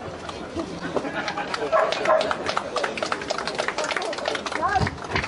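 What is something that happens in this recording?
A crowd claps and applauds outdoors.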